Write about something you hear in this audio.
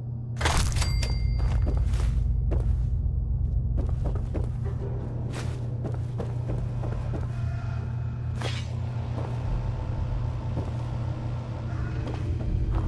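Footsteps thud on creaky wooden floorboards.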